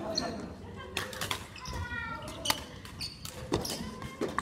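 Badminton rackets strike a shuttlecock with sharp pops in an echoing hall.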